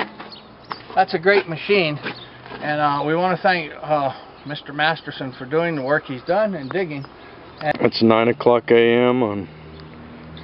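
An elderly man talks calmly, close by.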